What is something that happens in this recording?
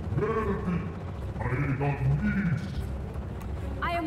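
A deep male voice booms with menace.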